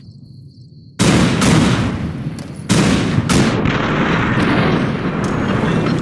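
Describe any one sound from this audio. A heavy explosion booms and rumbles.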